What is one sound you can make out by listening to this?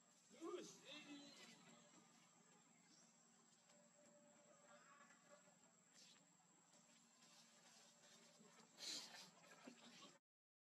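Small feet scamper and rustle through dry leaves.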